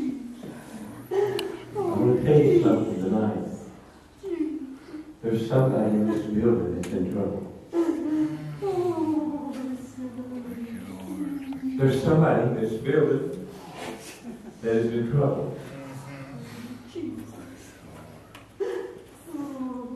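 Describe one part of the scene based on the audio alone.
An elderly man speaks with feeling through a microphone and loudspeakers in an echoing room.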